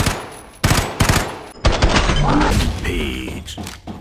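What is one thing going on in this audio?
A rifle fires a loud, sharp shot.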